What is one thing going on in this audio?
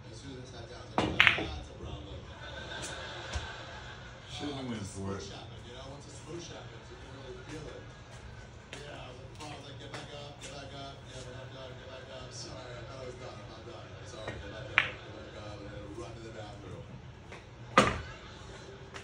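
Pool balls clack sharply as a cue strikes and they collide.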